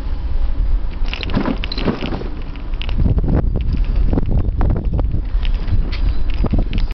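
Wind buffets loudly and rumbles low and steady outdoors.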